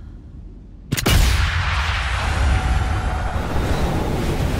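A bullet whooshes through the air in slow motion.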